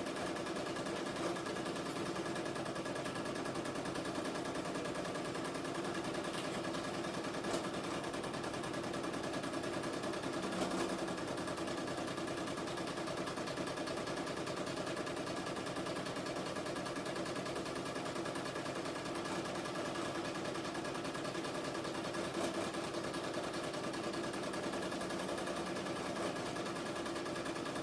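An embroidery machine hums and stitches steadily with a fast, rhythmic whir.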